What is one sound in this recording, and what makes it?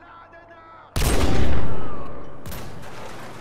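A rifle fires with a loud boom that echoes away.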